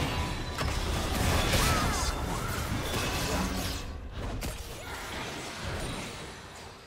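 Magic spell effects whoosh and crackle during a fast fight.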